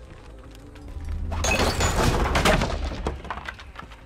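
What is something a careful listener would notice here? Wood cracks and splinters loudly as it is smashed.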